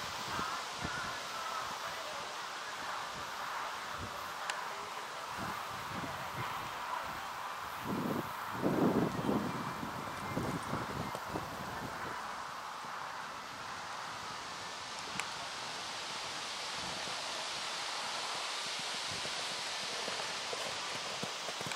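A horse's hooves thud on soft sand at a canter.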